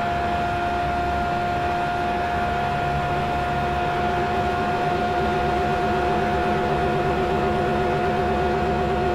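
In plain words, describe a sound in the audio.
Tyres and wind rush loudly around a speeding car.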